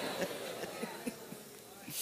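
A middle-aged man laughs loudly.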